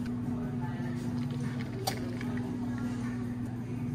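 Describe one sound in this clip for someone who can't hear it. Espresso pours over ice with a soft trickle.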